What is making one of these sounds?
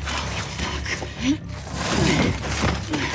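A young woman exclaims in alarm through a gas mask.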